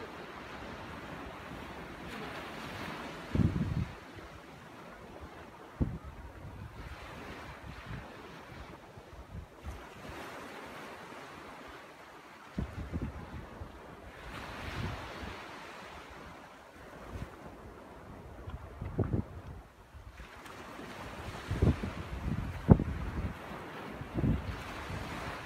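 Small waves wash onto a sandy shore and roll back.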